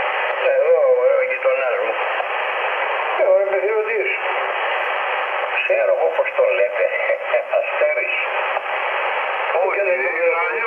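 A radio receiver hisses with steady, crackling static.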